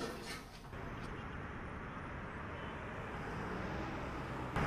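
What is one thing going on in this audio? City traffic hums in a steady distant rumble.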